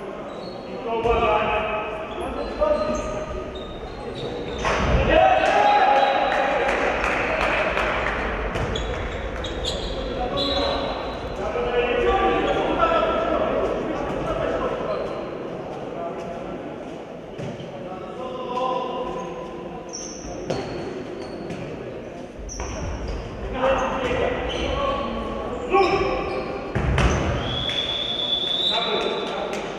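Sports shoes squeak on the floor.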